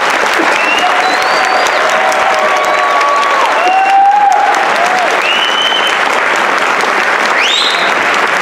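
A large concert band plays in an echoing hall.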